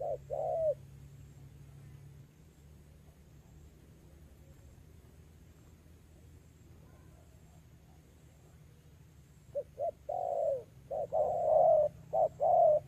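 Doves coo nearby in short, repeated low calls.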